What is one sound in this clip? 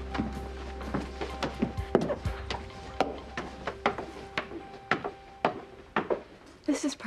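Footsteps thump on wooden stairs.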